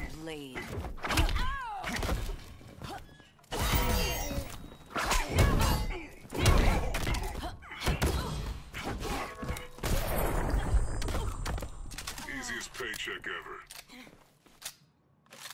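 Heavy punches and kicks land with loud thuds and smacks.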